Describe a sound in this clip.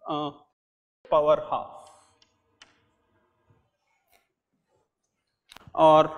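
An older man speaks calmly through a clip-on microphone.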